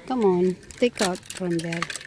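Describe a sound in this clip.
Plastic hangers clatter against a metal rail.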